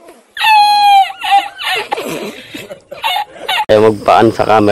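A middle-aged man laughs loudly and heartily.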